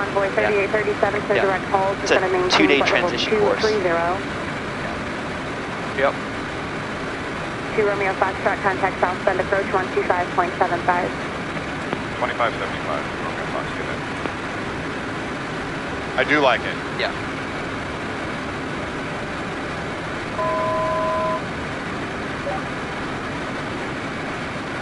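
Aircraft engines drone steadily inside a small cabin.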